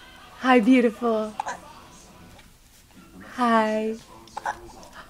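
A baby squeals loudly up close.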